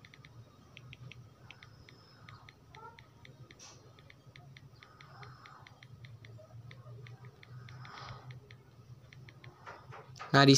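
Soft keyboard clicks tap out in a quick, uneven rhythm.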